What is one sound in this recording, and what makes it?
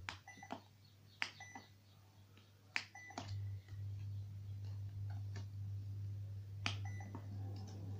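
Plastic puzzle pieces click and tap against a plastic board.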